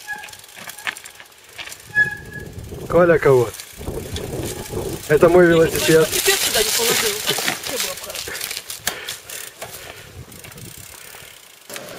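Bicycle tyres crunch over stony ground.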